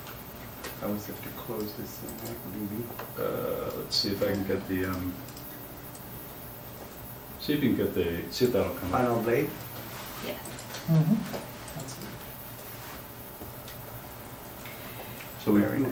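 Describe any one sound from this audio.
A man speaks calmly nearby, pausing between phrases.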